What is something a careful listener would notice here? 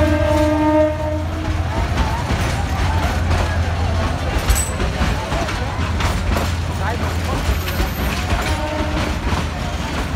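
A train horn blares.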